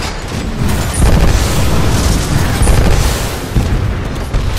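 Steam hisses loudly.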